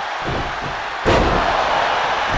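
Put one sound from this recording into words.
A body slams onto a mat with a heavy thud.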